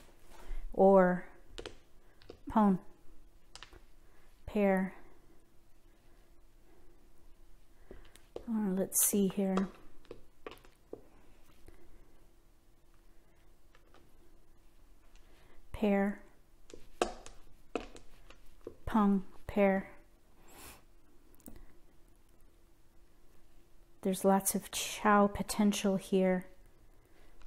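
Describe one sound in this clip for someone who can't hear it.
Plastic tiles click softly as they are picked up and set down.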